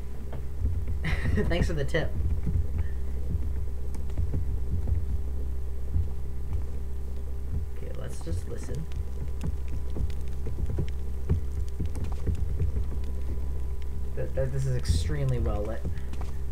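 A young man talks quietly and calmly into a microphone.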